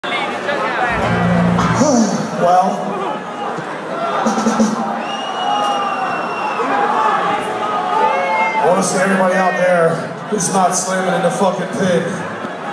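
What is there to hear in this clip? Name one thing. A live band plays music loudly through loudspeakers.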